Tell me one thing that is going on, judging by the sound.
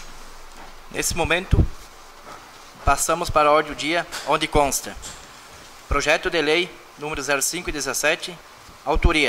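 A man speaks calmly into a microphone, heard through a loudspeaker in an echoing room.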